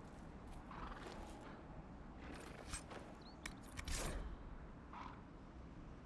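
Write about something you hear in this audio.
A game menu chimes as it opens.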